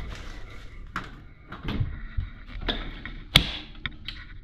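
A battery clicks into place on a charger.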